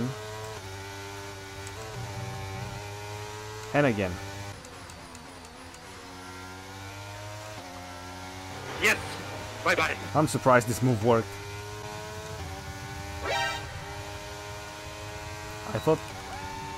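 A racing car engine screams at high revs, its pitch climbing and dropping with each gear change.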